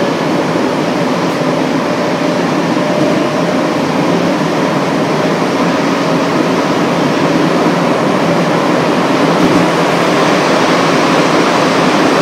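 An underground train rumbles and roars loudly through a tunnel.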